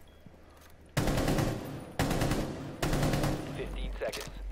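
A rifle fires several short bursts of gunshots.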